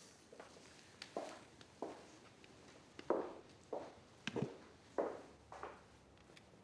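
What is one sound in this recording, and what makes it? A man walks in socks on a wooden floor.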